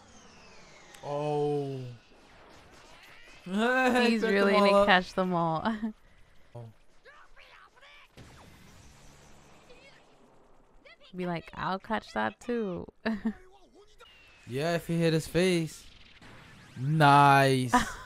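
A young woman laughs and talks close to a microphone.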